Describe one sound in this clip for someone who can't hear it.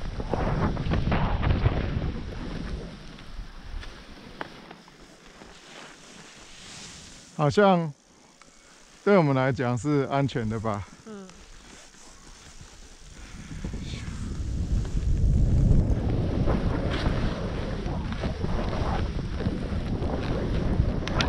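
Skis hiss and swish through soft snow.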